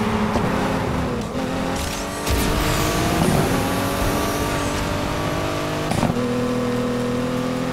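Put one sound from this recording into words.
A car engine roars at high revs, shifting gears as it speeds up.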